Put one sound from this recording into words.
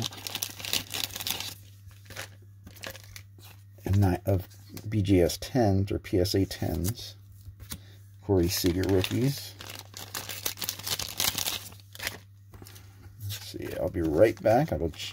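Trading cards slide and rub against each other between fingers.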